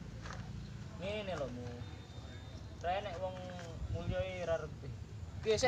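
Young men talk with each other nearby, outdoors.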